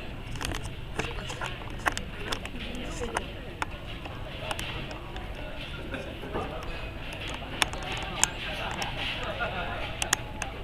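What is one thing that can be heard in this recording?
A crowd of young people chatters nearby outdoors.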